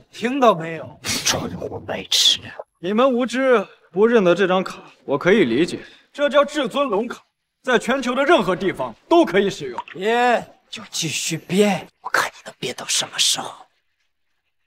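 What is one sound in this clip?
A young man speaks sharply and mockingly close by.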